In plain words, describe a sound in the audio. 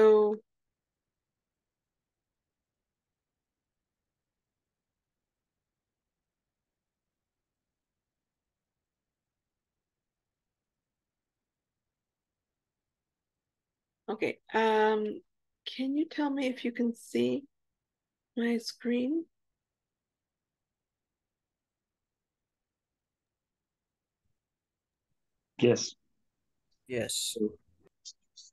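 A woman speaks calmly over an online call, in short bursts with long silences.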